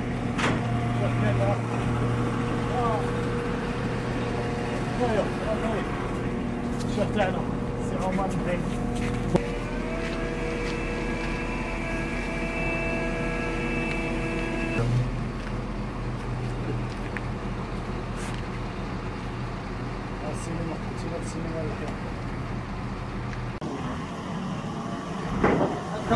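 A heavy engine hums steadily nearby.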